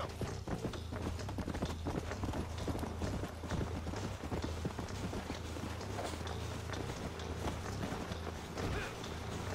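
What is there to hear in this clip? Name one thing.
Horse hooves gallop quickly over dry ground.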